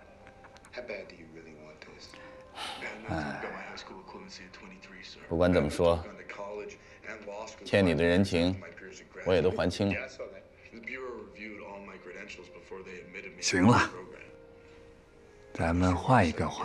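An elderly man speaks calmly in a low voice.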